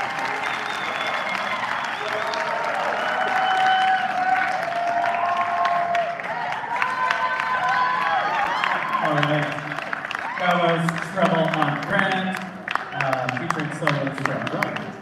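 An audience claps loudly in a large echoing hall.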